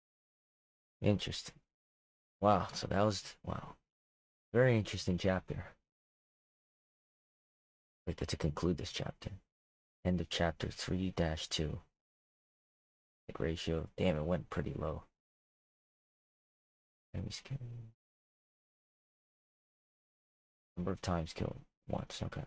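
A young man talks animatedly into a close microphone, in short bursts with pauses.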